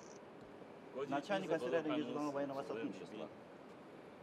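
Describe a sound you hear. A man speaks briefly in greeting, close by.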